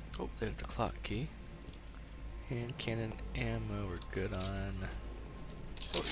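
A fire crackles in a fireplace.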